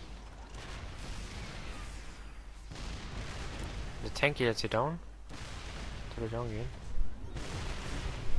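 Guns fire and small explosions pop in a battle.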